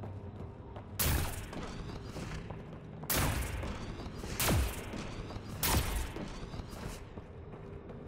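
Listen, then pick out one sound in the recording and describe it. Jet thrusters roar in short bursts.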